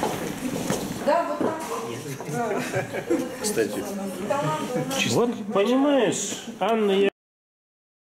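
A man and a woman chat and laugh close by.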